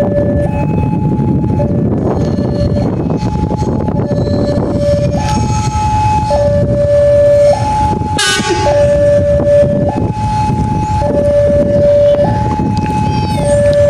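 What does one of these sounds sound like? A train engine rumbles as a locomotive approaches slowly.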